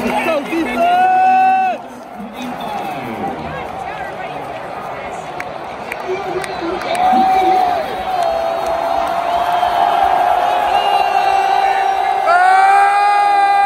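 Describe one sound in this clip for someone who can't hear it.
A huge crowd cheers and roars in a large open stadium.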